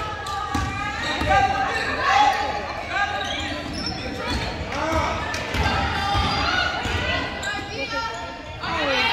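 A basketball bounces on the court with echoing thuds.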